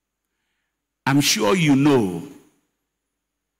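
A middle-aged man speaks with animation into a microphone, heard through loudspeakers.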